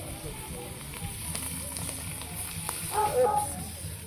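A wood fire crackles under a pan.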